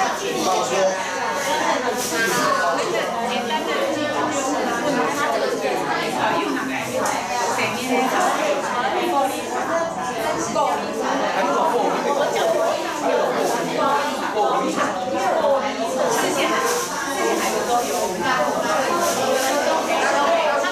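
Many people chatter at once in a room full of overlapping voices.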